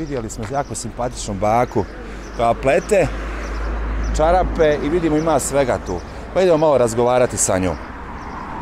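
A young man speaks calmly into a clip-on microphone outdoors.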